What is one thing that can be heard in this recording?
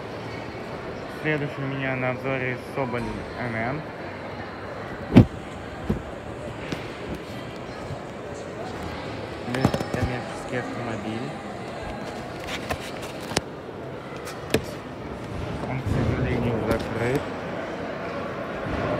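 A crowd murmurs in a large hall.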